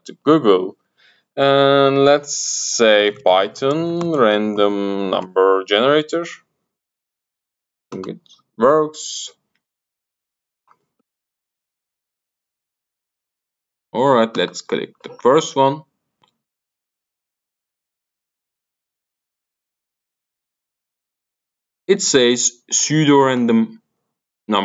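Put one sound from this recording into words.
A middle-aged man talks calmly into a close microphone, pausing often.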